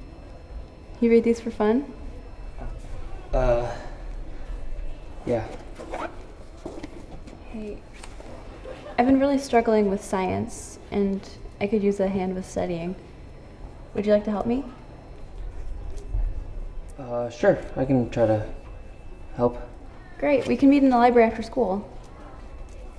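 A young woman speaks softly and calmly close by.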